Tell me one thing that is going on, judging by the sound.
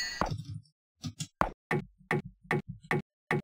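Swords clash with sharp metallic clinks.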